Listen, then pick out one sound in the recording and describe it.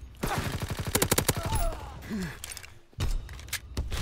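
A weapon is reloaded with metallic clicks.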